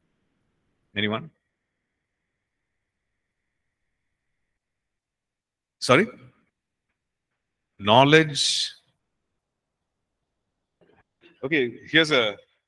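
A man speaks into a microphone in short, spaced phrases.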